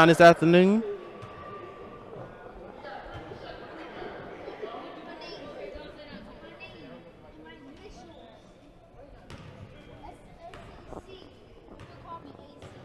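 People chatter and call out in an echoing gym.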